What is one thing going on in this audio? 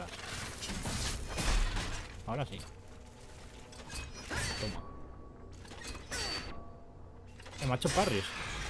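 Metal blades clash and ring in a fight.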